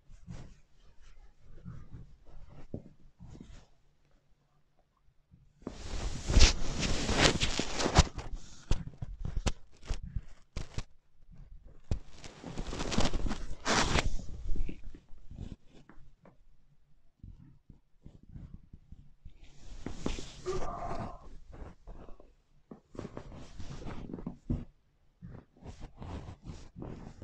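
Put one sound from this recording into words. Soft thumps and creaks come from a padded seat as the people shift their weight.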